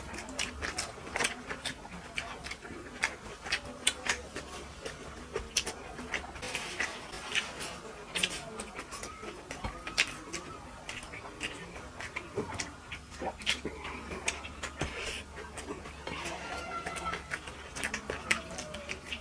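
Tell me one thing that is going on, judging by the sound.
A man chews and smacks his lips loudly close to a microphone.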